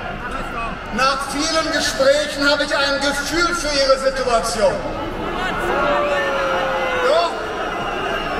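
A woman sings through loud outdoor speakers.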